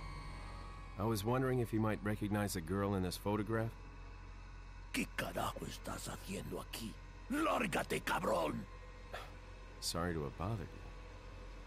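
A middle-aged man speaks calmly in a low, gravelly voice.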